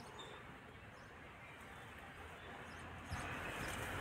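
A woven grass mat rustles as it is unrolled.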